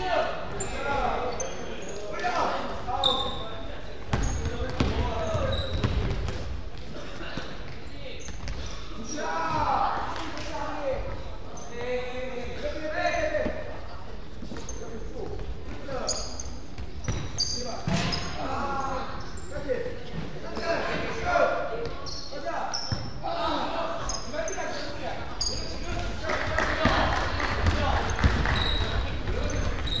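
Young boys shout and call out to each other in a large echoing hall.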